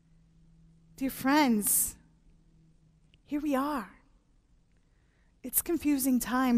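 A woman speaks expressively into a microphone, in short phrases with pauses.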